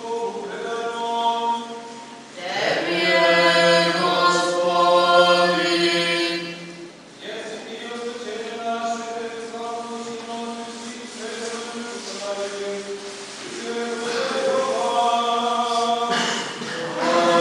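A man chants a slow, sustained melody in a large echoing hall.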